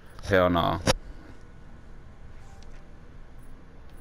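Paper pages turn with a soft rustle.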